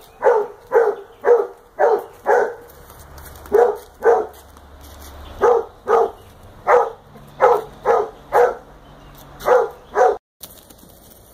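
A young donkey's hooves clop on concrete.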